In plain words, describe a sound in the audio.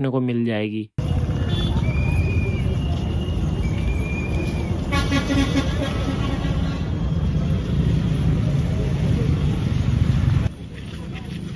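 A motorcycle engine rumbles nearby.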